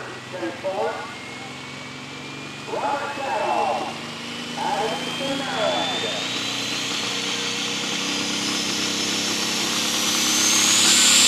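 A tractor engine's high whine rises steadily in pitch.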